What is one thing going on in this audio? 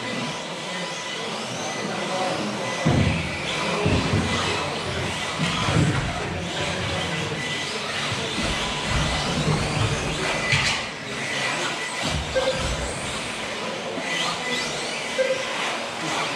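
Small electric motors whine as remote-control cars race around a track in a large echoing hall.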